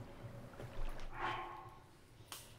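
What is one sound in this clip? A soft menu chime sounds.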